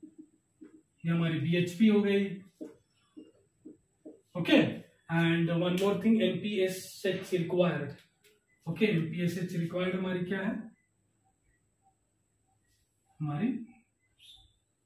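A man lectures calmly and clearly, close by.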